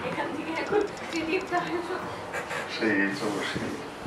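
Several people laugh nearby.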